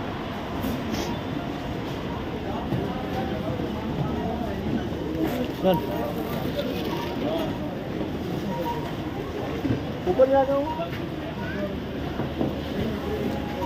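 A crowd of men chatter around nearby.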